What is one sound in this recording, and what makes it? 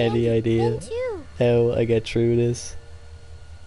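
A young girl speaks softly and sweetly.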